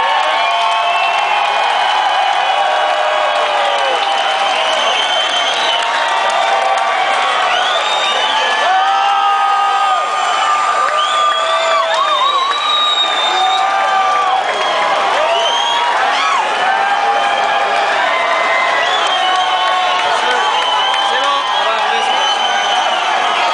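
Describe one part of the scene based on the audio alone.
A rock band plays loudly live, heard from within the crowd.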